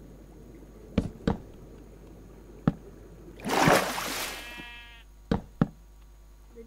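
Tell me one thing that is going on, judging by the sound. Wooden blocks are set down with short, soft knocks.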